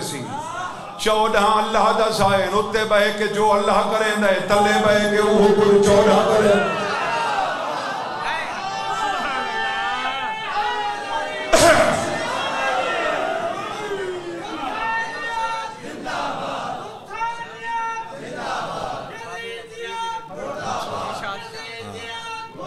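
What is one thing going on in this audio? A man chants loudly and with feeling through a microphone and loudspeakers.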